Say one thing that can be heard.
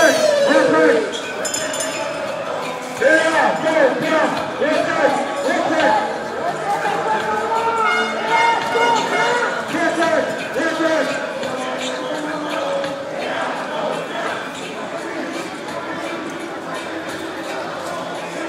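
A crowd of marchers sings and chants outdoors.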